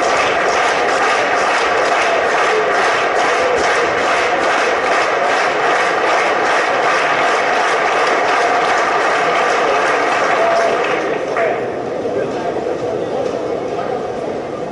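A crowd claps and cheers loudly in a large echoing hall, then quiets down.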